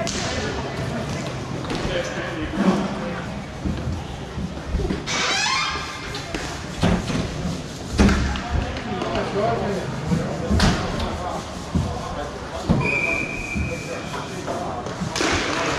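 Hockey sticks clack against a ball and each other.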